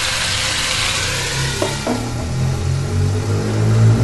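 A glass lid clinks onto a pan.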